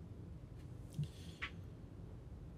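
Book pages rustle as they are opened.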